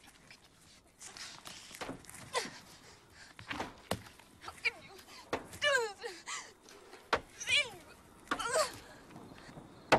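A young woman screams angrily.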